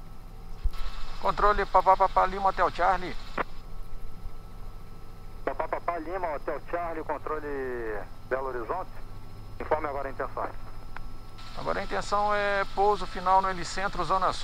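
A man talks with animation over a headset intercom.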